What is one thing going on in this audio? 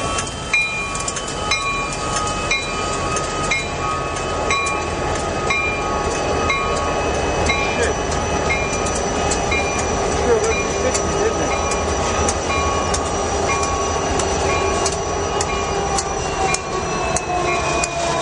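Metal wheels squeal on the rails.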